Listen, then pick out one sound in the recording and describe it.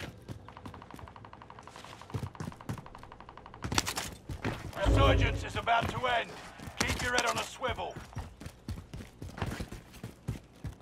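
Footsteps patter quickly over rooftiles and stone.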